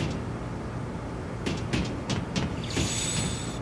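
Footsteps clang on a metal floor.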